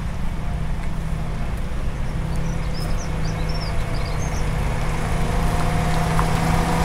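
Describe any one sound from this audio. A tanker truck's diesel engine rumbles as the truck slowly drives past close by, growing louder.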